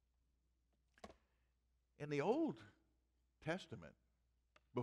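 An elderly man speaks with animation through a microphone, in short bursts.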